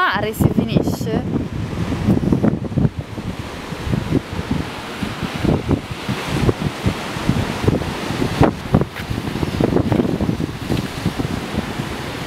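Waves surge and crash against rocks below.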